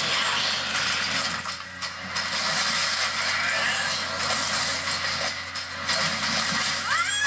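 A cartoon soundtrack plays quietly from a laptop speaker.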